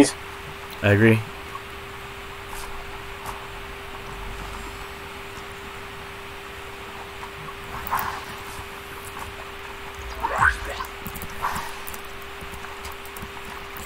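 Footsteps patter quickly on a wooden deck.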